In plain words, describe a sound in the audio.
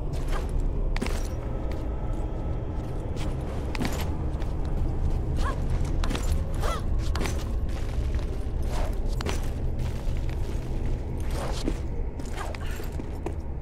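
Hands grab and slap against stone ledges.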